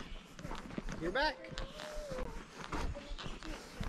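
A young child calls out nearby.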